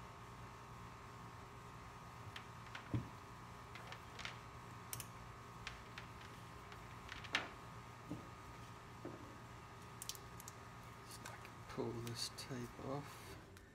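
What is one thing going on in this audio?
Plastic parts click and tap.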